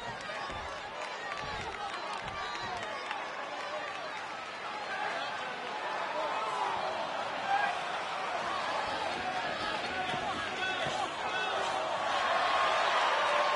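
A large crowd cheers and murmurs in an echoing arena.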